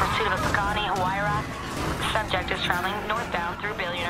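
A car crashes with a loud bang and scraping.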